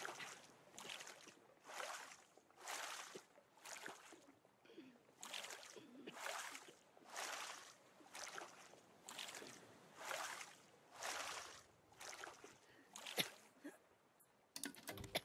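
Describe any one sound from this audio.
Water splashes in rhythmic strokes as a paddle pulls through it.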